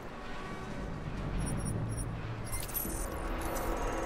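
Electronic beeps chirp as a keypad code is entered.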